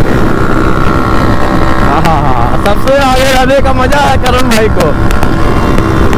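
A second motorcycle engine drones nearby as it passes.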